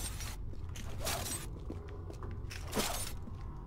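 Footsteps tap on a hard stone floor.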